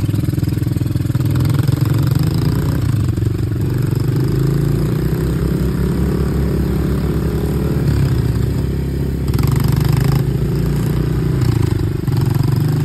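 An all-terrain vehicle engine rumbles steadily as it drives along.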